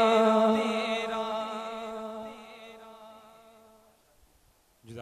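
A man sings a long, held note through a loudspeaker, slowly fading away.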